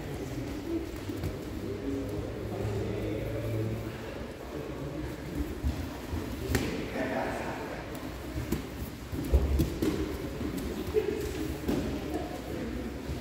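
Bodies thud and shuffle on a padded mat.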